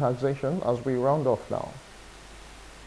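A man speaks calmly over a phone line.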